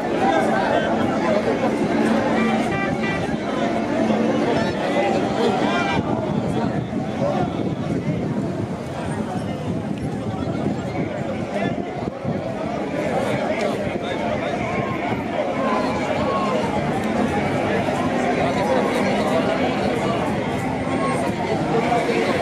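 A crowd of men and women chatters and calls out outdoors.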